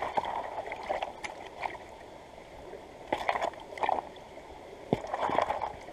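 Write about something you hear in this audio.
Gravel and water slosh and scrape.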